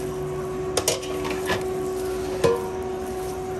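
A plastic food pan clatters as it is handled.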